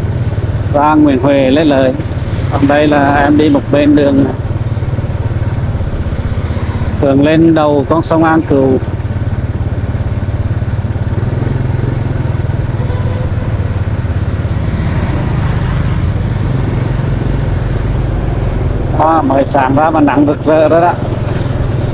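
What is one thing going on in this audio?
A motorbike engine hums steadily while riding.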